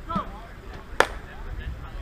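A bat cracks sharply against a softball.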